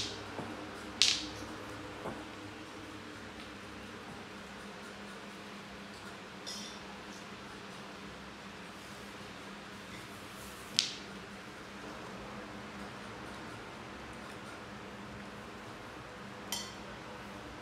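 A broom handle knocks sharply against the floor.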